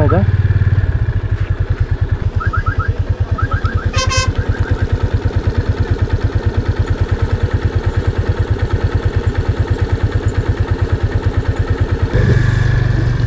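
A motorcycle engine idles with a rapid, even putter up close.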